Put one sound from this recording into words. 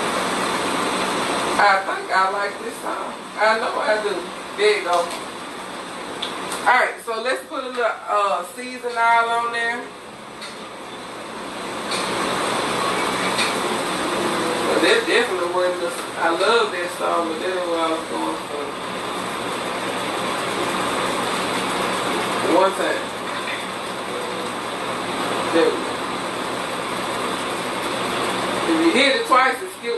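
Steam hisses steadily from a pot on a stove.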